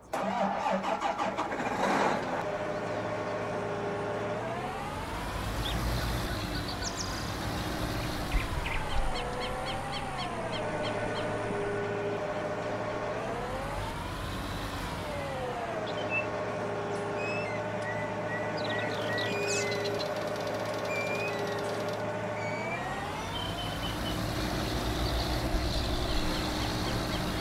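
A tractor engine drones steadily, revving up and down as it drives.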